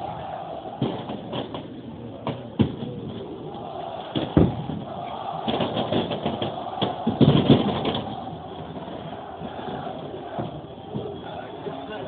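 Fireworks and flares crackle and bang nearby.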